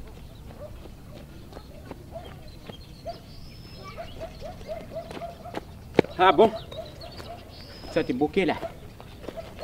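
Footsteps crunch on gravel, coming closer.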